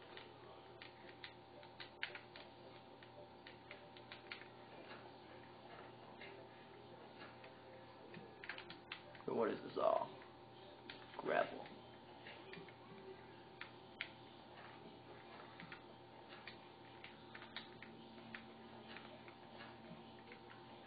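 A television speaker plays video game sounds of digging, in quick repeated taps.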